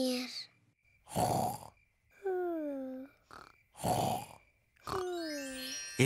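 A child snores in sleep, with a rasping in-breath and a falling whistle out.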